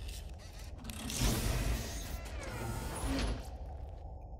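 A heavy metal chest creaks and clanks open.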